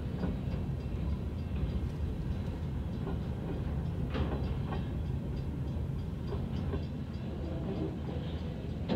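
Rain patters on a car windshield.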